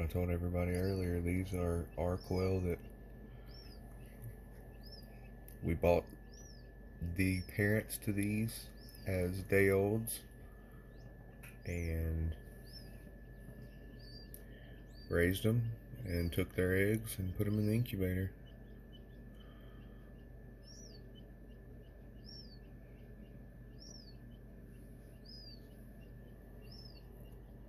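A chick peeps softly from inside a hatching egg.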